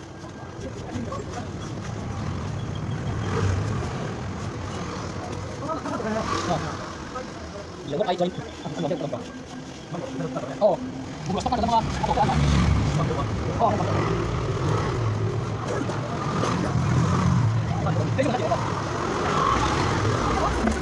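A trowel scrapes and smooths wet cement.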